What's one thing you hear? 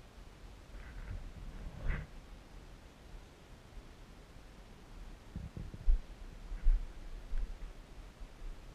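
Bare feet thump and shuffle on a padded mat.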